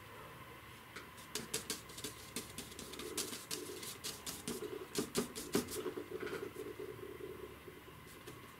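A painting knife taps and scrapes lightly on paper.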